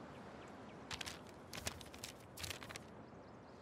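Paper rustles as a map is flipped over.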